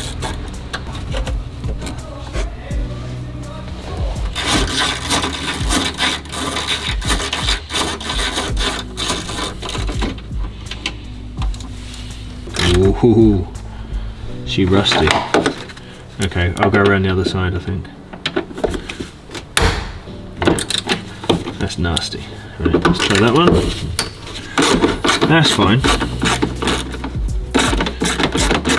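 Wires and plastic parts rustle and clatter.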